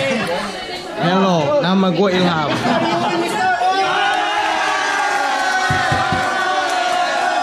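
A group of teenage boys shout and cheer loudly.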